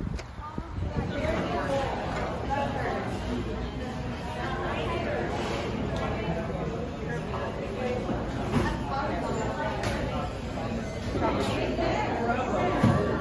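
Many people chatter in a busy room.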